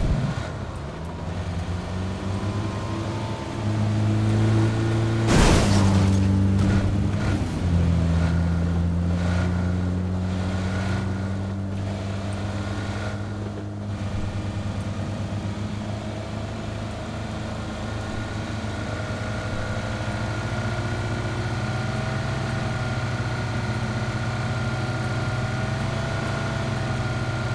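Tyres rumble over rough ground and then a road.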